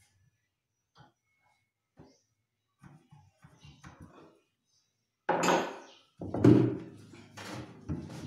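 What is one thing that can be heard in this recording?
Small knocks and taps sound on a wooden cabinet.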